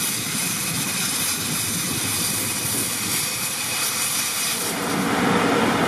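A truck engine runs steadily nearby.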